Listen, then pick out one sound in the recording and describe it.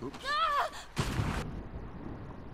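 Water splashes loudly as a body plunges in.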